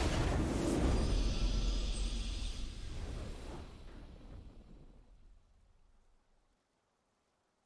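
A triumphant fanfare swells and then fades away.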